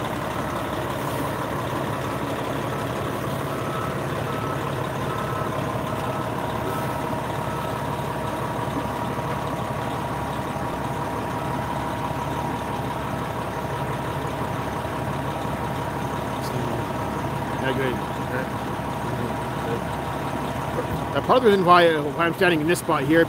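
A vehicle engine idles steadily nearby.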